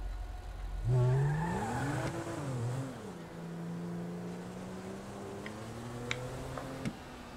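A car engine revs up and pulls away.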